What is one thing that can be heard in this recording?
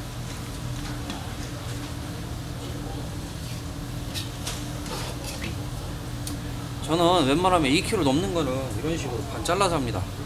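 A hand slaps and pats wet fish on a plastic board.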